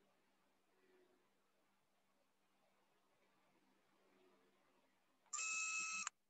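A man speaks calmly, faintly, through an online call.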